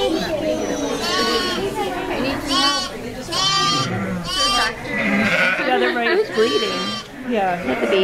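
A newborn lamb bleats in high, thin, repeated cries.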